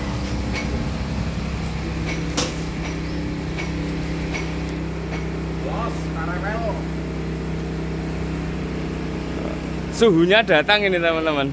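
A motor hums steadily close by.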